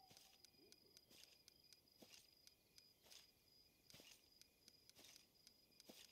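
Short soft ticks sound quickly, one after another, as a list scrolls.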